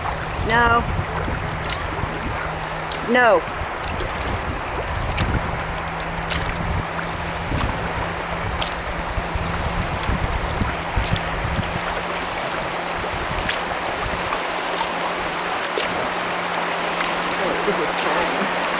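Water rushes over shallow river riffles ahead.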